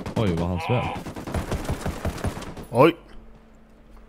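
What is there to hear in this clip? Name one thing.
A suppressed rifle fires several quick shots.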